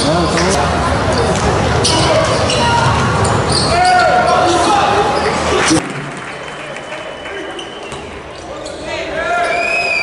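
A crowd cheers and chatters loudly, echoing.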